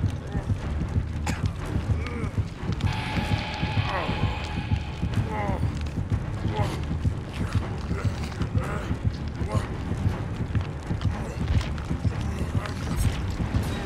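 Heavy footsteps thud steadily on the ground.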